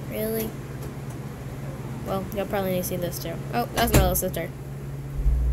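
A young girl talks close to the microphone.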